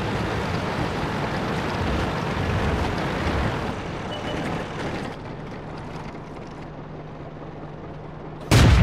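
A tank engine rumbles loudly, then settles to a low steady hum.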